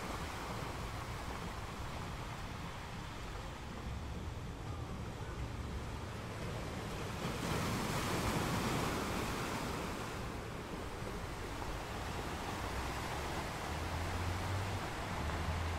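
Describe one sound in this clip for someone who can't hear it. Ocean waves crash and roll onto rocks, swelling and fading.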